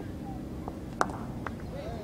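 A cricket bat cracks against a ball in the distance.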